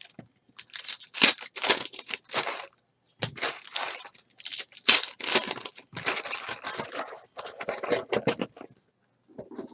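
Foil card packs crinkle and tear open in hands.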